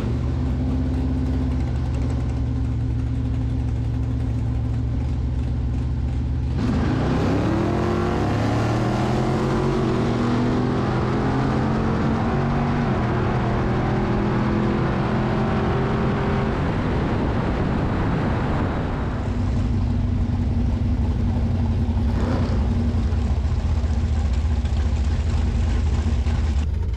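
A big V8 engine idles with a deep, lumpy rumble.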